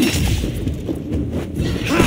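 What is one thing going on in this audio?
Metal blades clash with sharp ringing strikes.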